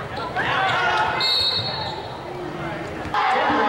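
Basketball shoes squeak on a hardwood court.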